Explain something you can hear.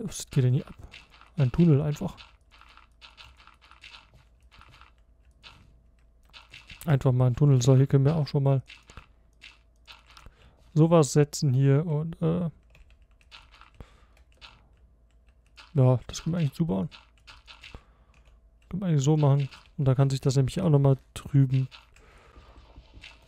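Dirt blocks are placed with soft, crunchy thuds.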